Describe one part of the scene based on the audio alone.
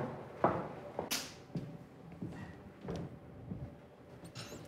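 Footsteps thud across a hollow stage floor.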